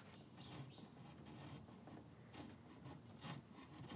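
A scraper shaves along a wooden edge.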